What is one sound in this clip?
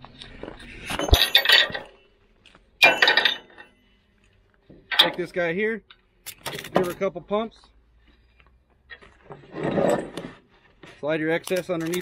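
A ratchet strap clicks as it is cranked.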